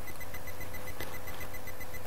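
Eyeglasses click softly as they are put on, close by.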